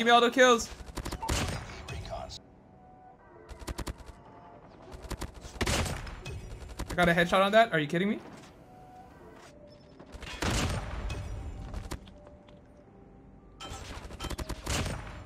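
Video game gunfire rattles in rapid bursts.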